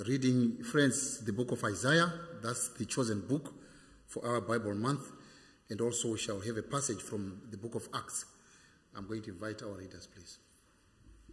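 A man speaks calmly into a microphone in a reverberant hall.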